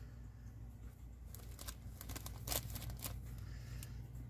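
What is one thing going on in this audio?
Fabric rustles as it is handled and set down.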